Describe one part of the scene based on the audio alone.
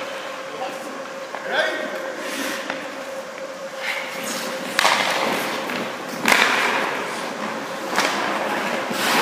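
Skate blades scrape and hiss on ice.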